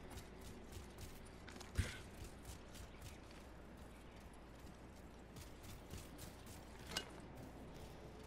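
Quick footsteps run across hard ground.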